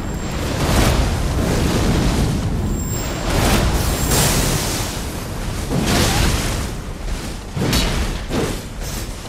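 Swords clash and slash repeatedly.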